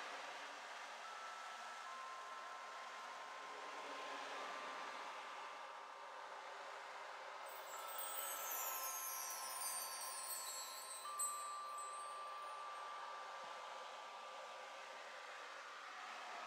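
Singing bowls ring with steady, sustained tones.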